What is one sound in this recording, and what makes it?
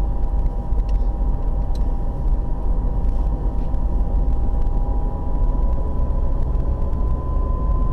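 Tyres roll on asphalt with a low, steady rumble.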